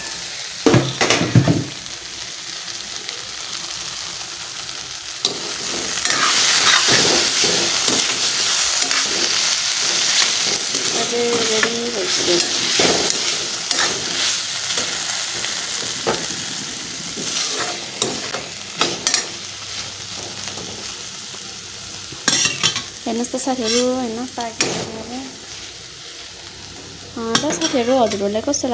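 Vegetables sizzle frying in a steel wok.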